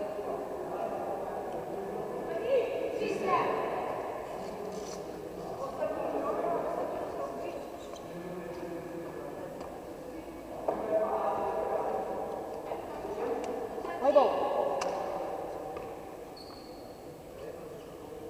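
Young people chatter and call out in a large echoing hall.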